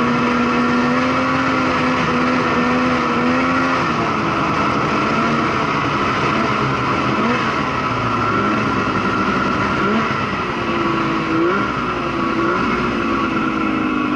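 A snowmobile engine roars steadily close by, its pitch rising and falling as it speeds along.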